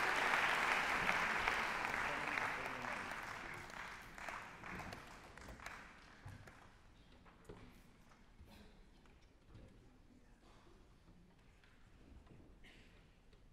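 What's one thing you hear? Chairs scrape and instruments knock as a large group of musicians sits down in an echoing hall.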